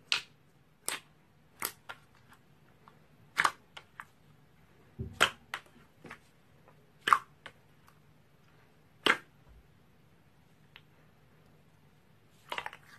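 A hand squeezes thick glossy slime, making wet popping squelches.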